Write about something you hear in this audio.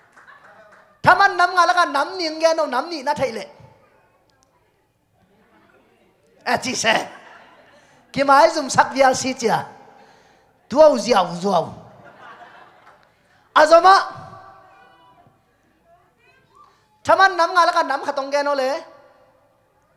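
A man speaks with animation into a microphone over loudspeakers, in bursts with pauses, in a large echoing hall.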